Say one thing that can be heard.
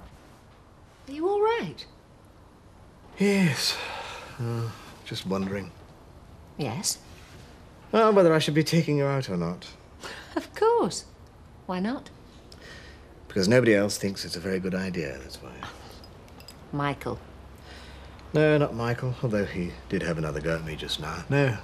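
A middle-aged woman speaks calmly nearby.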